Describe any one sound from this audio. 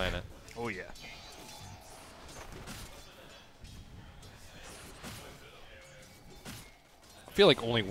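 Magic spells crackle and blast during a battle.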